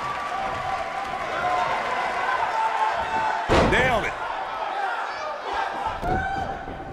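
A large crowd cheers and chants in a big arena.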